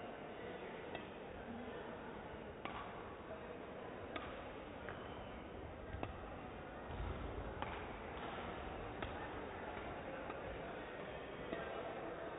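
Rackets strike a shuttlecock with sharp pops, back and forth, in a large echoing hall.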